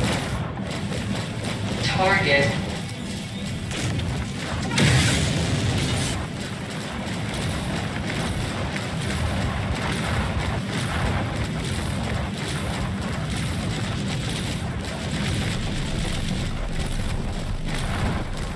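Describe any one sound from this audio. A deep engine rumbles steadily.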